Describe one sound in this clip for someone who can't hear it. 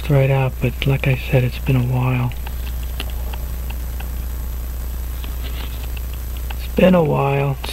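Metal tweezers tick lightly against a watch movement.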